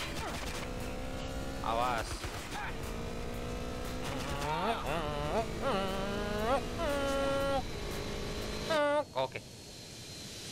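A motorcycle engine revs up and down.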